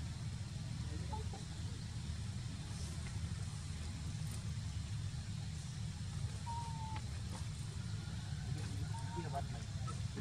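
A young monkey squeaks faintly.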